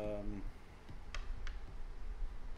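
Game pieces click softly on a wooden table.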